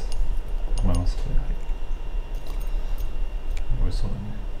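Chopsticks tap on a ceramic dish.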